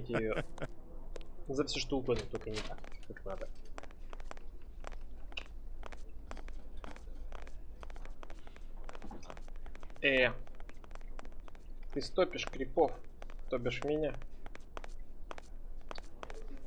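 Footsteps tap on a hard floor at a steady pace.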